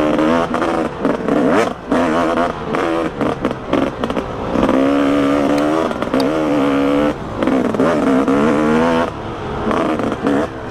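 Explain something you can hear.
A dirt bike engine revs and changes pitch as the bike rides along.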